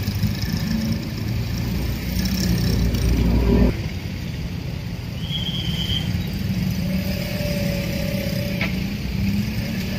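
Motorcycle engines idle and rumble close by.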